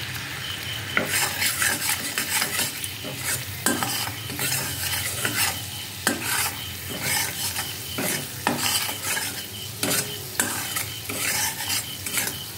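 A metal spatula scrapes and clatters against a metal pan.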